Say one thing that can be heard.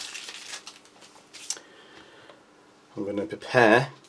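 A plastic wrapper rustles as it is handled.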